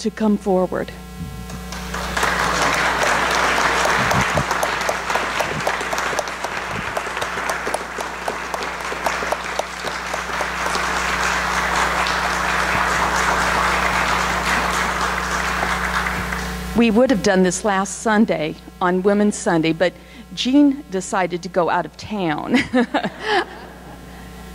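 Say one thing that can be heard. A woman speaks through a microphone and loudspeaker in an echoing hall.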